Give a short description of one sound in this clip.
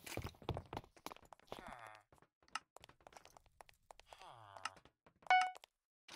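Short game clicks sound as menus open.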